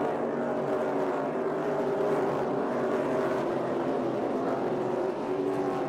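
Many race car engines roar loudly as a pack of cars speeds past.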